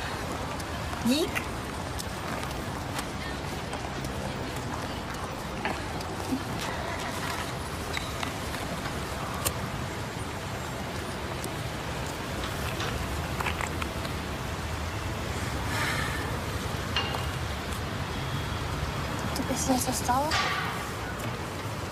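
A young woman speaks briefly nearby.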